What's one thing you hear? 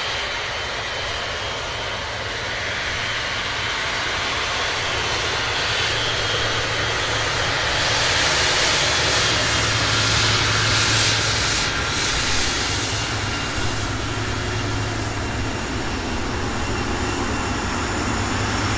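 A jet airliner's engines roar loudly as it rolls close by.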